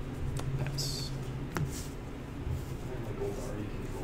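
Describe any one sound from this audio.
Cards tap and slide on a soft mat.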